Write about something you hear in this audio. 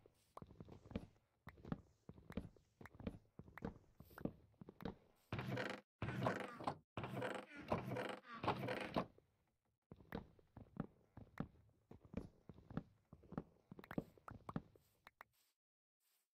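A video-game axe chops and breaks wooden blocks with choppy knocks.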